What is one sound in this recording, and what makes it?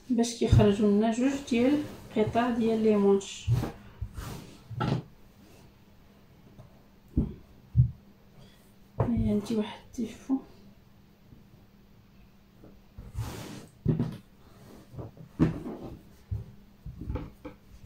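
A cloth rustles and swishes close by.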